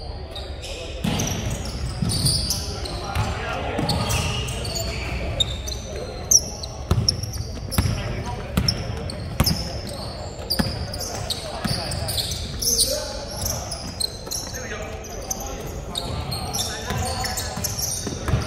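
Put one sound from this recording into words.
Young men shout and call out across an echoing hall.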